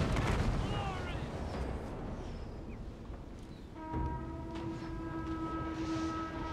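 Soldiers tramp across grassy ground.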